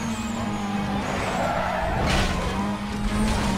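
A car scrapes and crunches against a wall.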